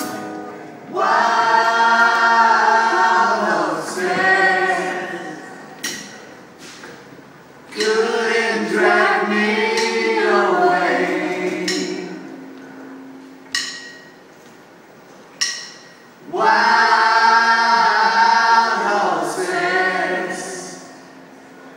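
An acoustic guitar strums along.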